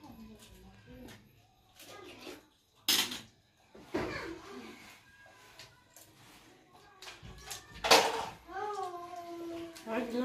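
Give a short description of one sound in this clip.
Spoons clink against dishes.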